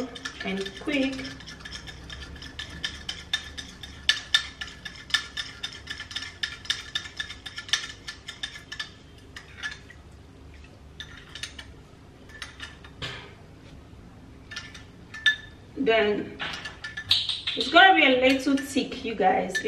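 A metal spoon stirs and clinks against a small glass bowl.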